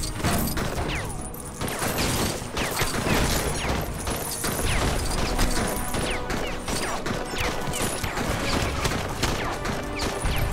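Objects shatter and break apart with bright cracking sounds.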